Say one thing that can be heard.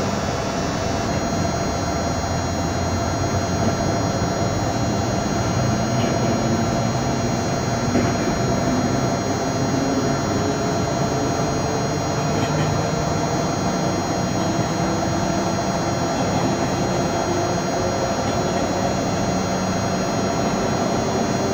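A train engine hums steadily as the train rolls along the track.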